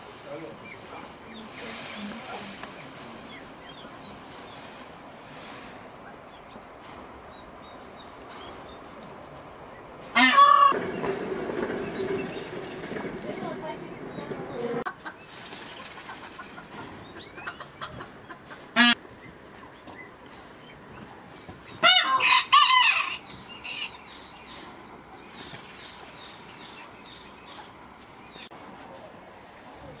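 Peacock tail feathers rattle and rustle as they shake.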